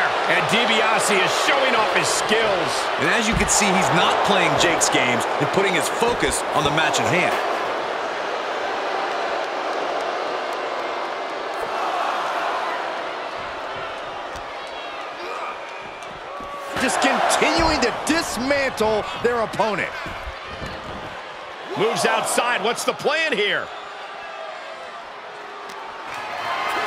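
A crowd cheers loudly throughout.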